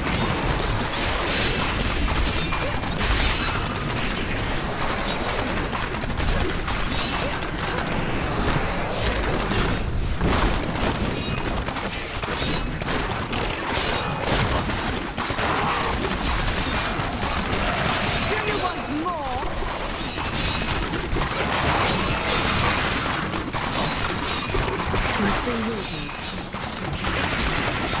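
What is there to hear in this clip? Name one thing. Monsters are struck with heavy impacts again and again.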